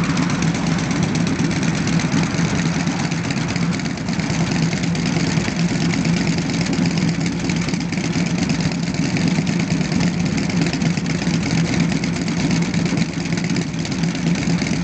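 Motorcycle engines idle with a deep, steady rumble close by.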